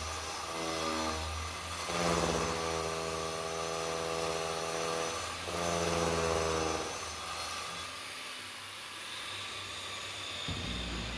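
A power grinder whines and grinds against a hard surface, rising and falling in pitch.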